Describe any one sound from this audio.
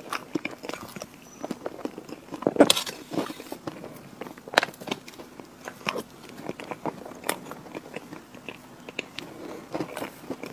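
A young woman chews a mouthful of soft chocolate cream cake with wet, sticky sounds close to a microphone.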